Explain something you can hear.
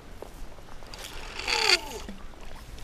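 A fishing rod whooshes through the air in a cast.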